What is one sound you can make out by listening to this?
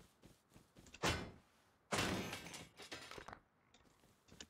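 An axe strikes wood with heavy chopping blows.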